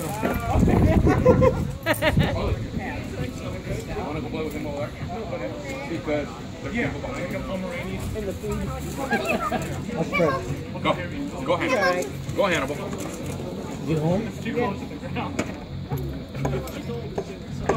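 Several people chat outdoors in the background.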